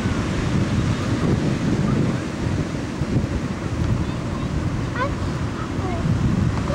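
Ocean surf breaks and washes up the beach.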